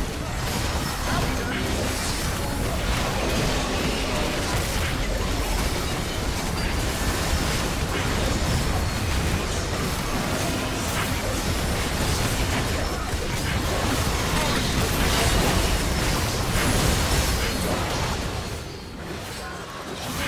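Game spell effects crackle and boom in a battle.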